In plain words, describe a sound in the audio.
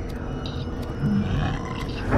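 A long-armed creature rummages and clatters through a small hatch.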